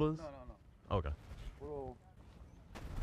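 An older man speaks with animation outdoors.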